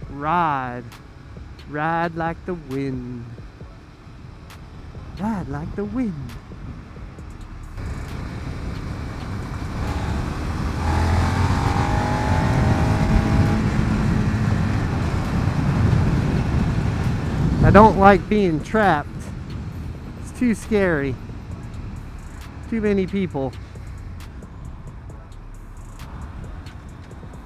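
A motorcycle engine hums and revs up and down as it rides along.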